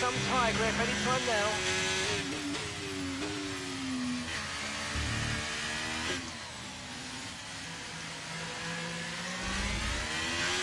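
A racing car engine whines loudly, its pitch rising and falling as the gears shift.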